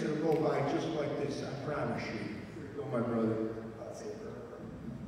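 An elderly man speaks into a microphone, heard through a loudspeaker in an echoing room.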